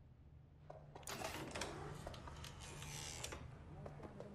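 A heavy metal door swings open.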